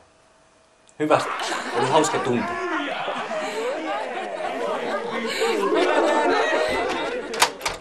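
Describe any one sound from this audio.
Several young men talk and shout over each other close by.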